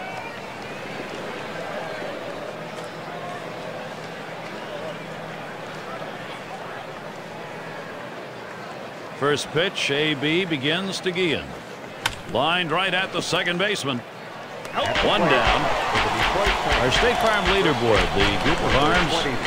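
A crowd murmurs steadily in a large stadium.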